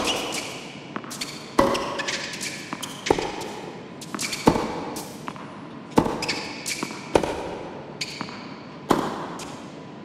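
Tennis rackets strike a ball back and forth.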